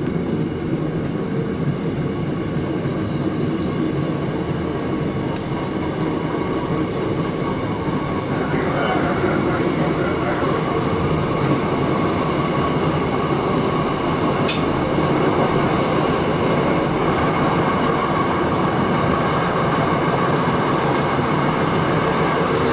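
A train rumbles steadily along the rails, growing a little louder.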